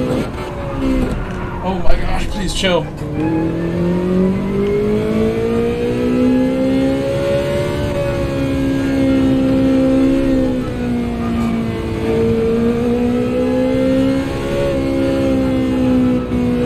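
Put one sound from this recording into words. A racing car engine roars, dropping sharply in pitch as it slows, then climbing steadily again.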